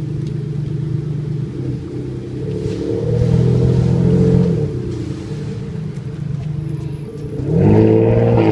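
A sports car engine idles with a deep rumble nearby.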